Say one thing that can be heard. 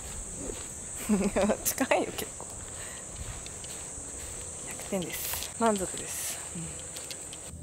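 A young woman talks cheerfully nearby.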